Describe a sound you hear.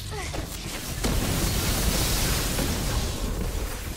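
A loud blast booms and crackles.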